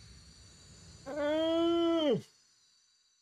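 A man groans loudly and long into a close microphone.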